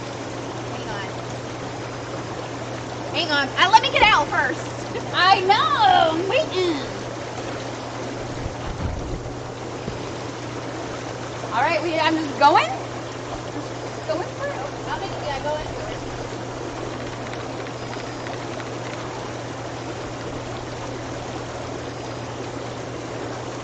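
A tub's water bubbles and hums steadily.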